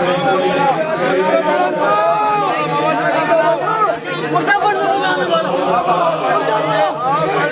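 A large crowd of men chants loudly together, close by.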